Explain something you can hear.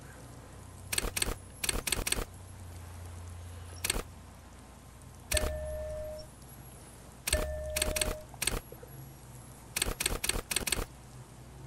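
Short interface clicks tick now and then.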